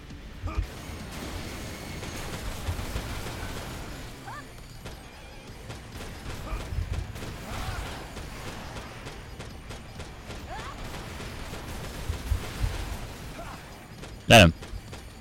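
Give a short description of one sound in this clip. Laser weapons fire in rapid bursts with low booming blasts.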